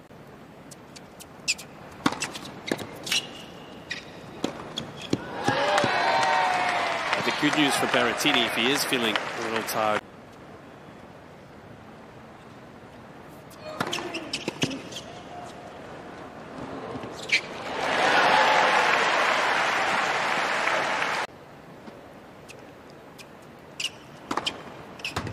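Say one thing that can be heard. A tennis ball is struck sharply with a racket.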